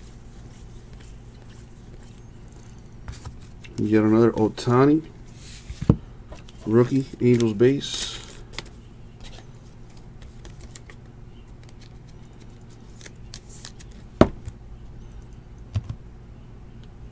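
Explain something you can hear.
Trading cards rustle and slide as hands sort through them.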